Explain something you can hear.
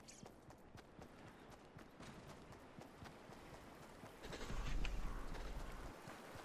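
Footsteps run quickly and steadily across the ground.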